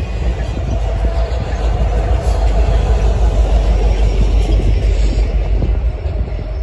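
A diesel locomotive roars past.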